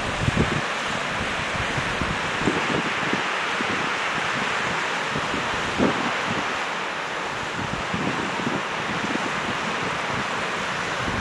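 Wind buffets outdoors in low gusts.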